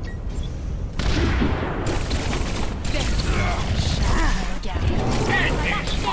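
Energy pistols fire in rapid bursts.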